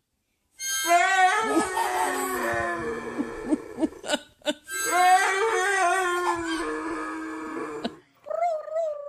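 A child plays a harmonica.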